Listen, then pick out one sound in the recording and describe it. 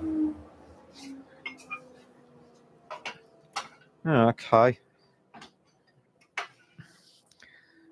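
Metal tools click and clatter lightly against a lathe.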